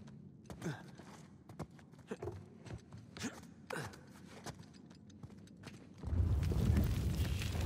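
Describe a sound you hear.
Footsteps scuff and tap on stone.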